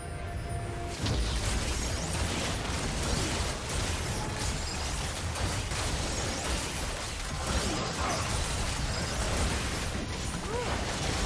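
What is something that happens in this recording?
Magic blasts and weapon hits clash rapidly in a busy fight.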